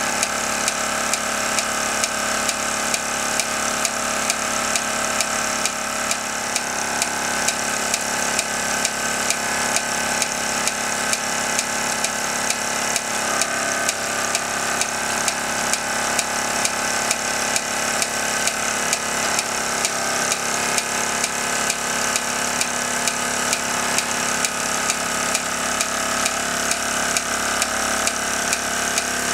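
The pulleys of a belt-driven model lineshaft whir.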